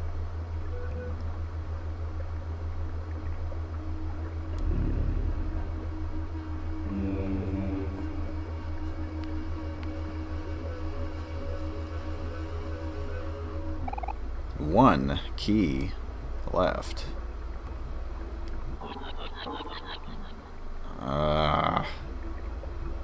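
Low, droning game music plays throughout.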